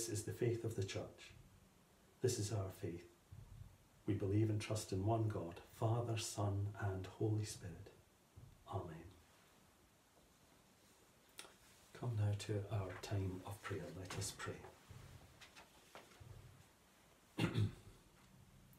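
A middle-aged man speaks calmly and solemnly close by, with pauses.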